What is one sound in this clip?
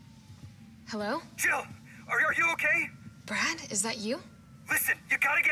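A young woman talks calmly on the phone.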